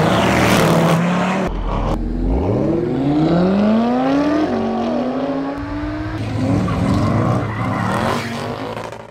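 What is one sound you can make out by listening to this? A sports car engine revs hard and roars as it accelerates.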